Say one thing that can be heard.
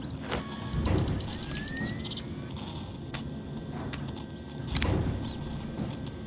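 A handheld device clicks and beeps as its menu opens.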